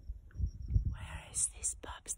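A woman speaks close to the microphone.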